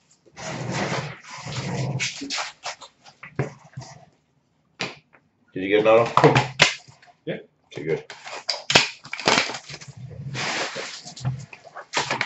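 Plastic card packs rustle and crinkle in hands.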